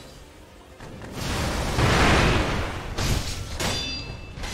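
Firecrackers crackle and pop loudly.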